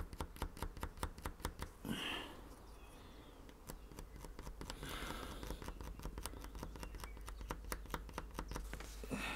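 A metal blade scrapes in quick, repeated strokes across a hard surface.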